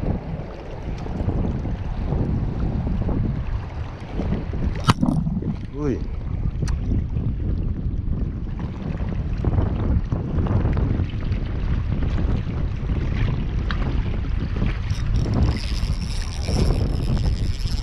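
Small waves lap against rocks.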